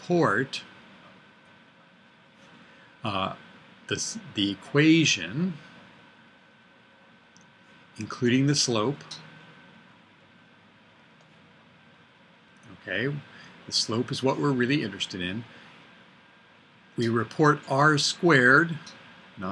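An older man speaks calmly and clearly into a nearby microphone, with pauses.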